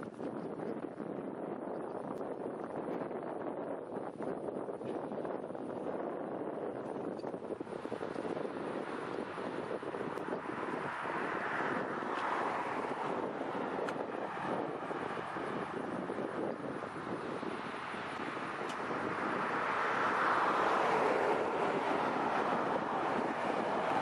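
A horse's hooves clop on pavement.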